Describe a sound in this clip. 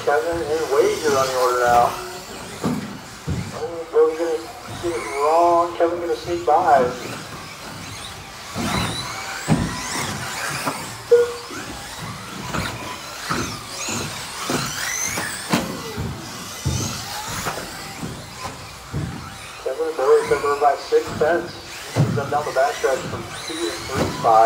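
Small electric model cars whine as they race around a track in an echoing hall.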